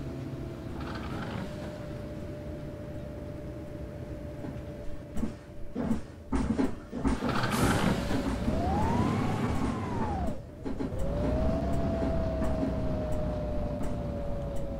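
A bus engine hums steadily, then revs up as the bus pulls away.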